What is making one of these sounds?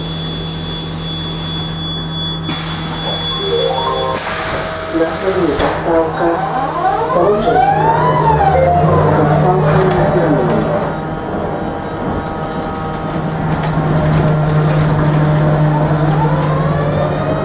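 Loose fittings rattle inside the moving bus.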